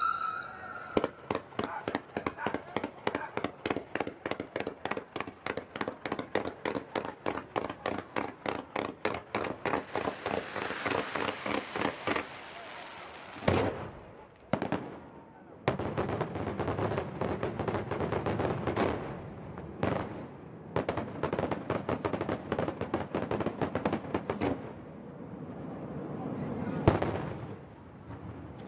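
Fireworks launch and burst in rapid, crackling pops.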